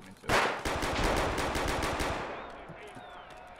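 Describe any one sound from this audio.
A rifle fires a rapid burst of gunshots that echo and fade.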